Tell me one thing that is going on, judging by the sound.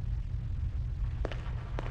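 Footsteps thud slowly on a hard floor.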